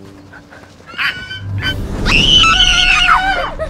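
A young woman screams with excitement.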